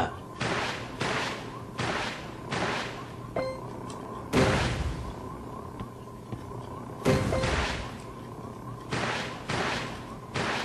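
Game projectiles whoosh past in repeated short bursts.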